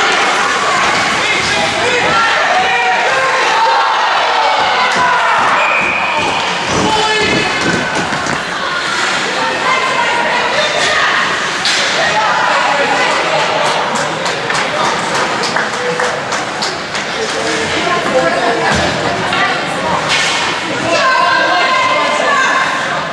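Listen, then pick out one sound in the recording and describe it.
Young players shout and call out to each other in an echoing rink.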